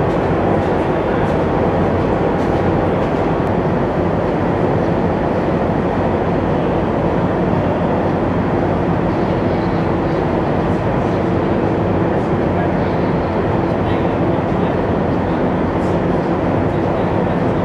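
The diesel engine of an amphibious assault vehicle roars as it drives.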